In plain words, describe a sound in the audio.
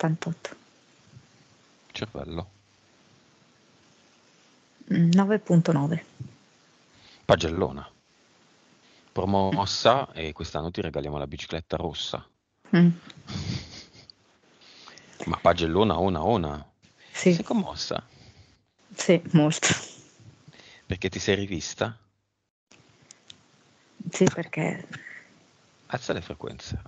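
A man talks over an online call.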